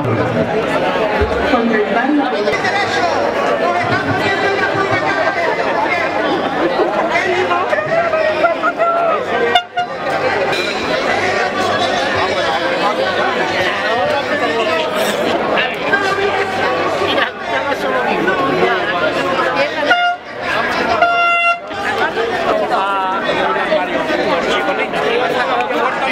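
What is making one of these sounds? A crowd of men and women chants and shouts loudly outdoors.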